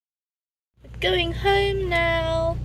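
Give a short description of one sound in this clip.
A young woman speaks calmly, close up.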